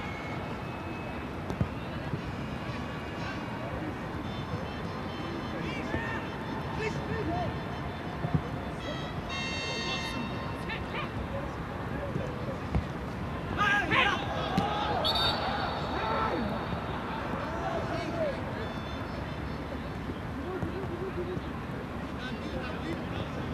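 A sparse stadium crowd murmurs in the distance, outdoors.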